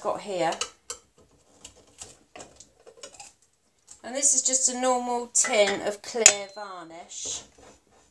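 A knife prises the lid off a tin with a metal clink.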